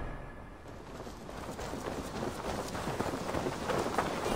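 Footsteps run over a dirt path.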